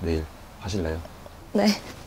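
A young man speaks softly and shyly up close.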